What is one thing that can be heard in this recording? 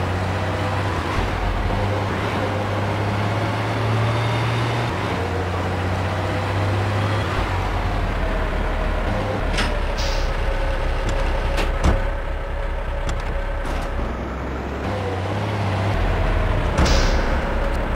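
A garbage truck's engine drones as it drives.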